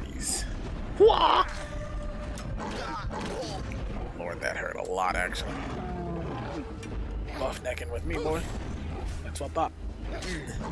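A creature snarls and growls.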